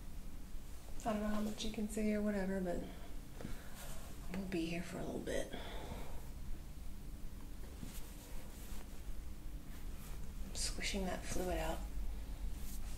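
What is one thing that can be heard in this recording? A woman speaks calmly nearby, in short bursts.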